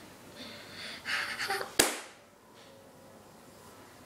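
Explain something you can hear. A hand slaps a person's face with a sharp smack.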